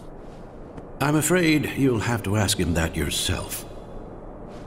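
An older man answers calmly in a deep voice.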